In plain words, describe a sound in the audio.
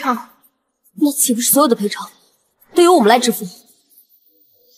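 Another young woman asks a question with alarm.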